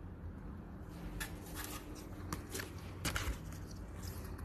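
Paper rustles as a booklet is handled.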